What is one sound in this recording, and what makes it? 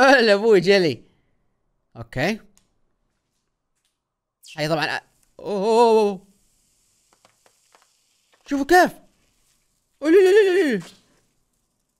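A young man speaks and exclaims close to a microphone.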